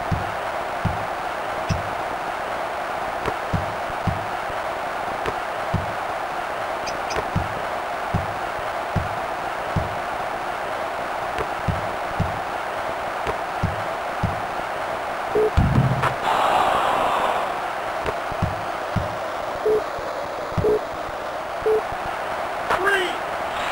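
A crowd murmurs and roars steadily.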